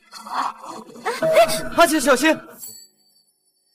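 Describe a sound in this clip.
A young man calls out in alarm.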